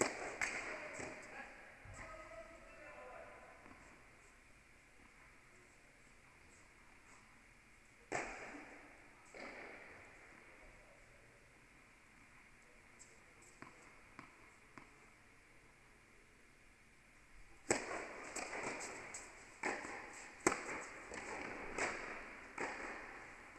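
A tennis ball is struck with a racket and bounces on the court, echoing in a large indoor hall.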